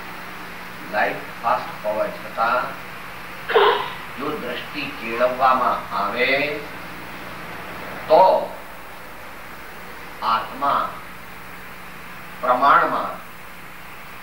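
An elderly man speaks slowly and calmly into a microphone, with pauses.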